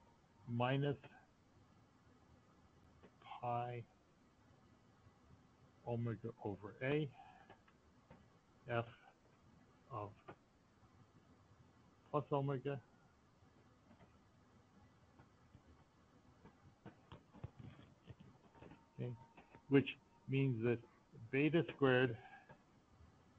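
A man speaks calmly through an online call, in short phrases with pauses.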